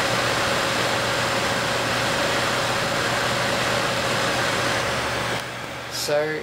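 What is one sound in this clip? Computer cooling fans whir steadily.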